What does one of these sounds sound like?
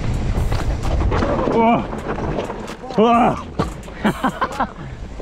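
Bike tyres roll and crunch over a rough dirt trail.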